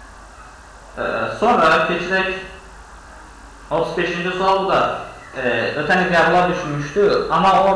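A man speaks calmly and steadily into a close microphone.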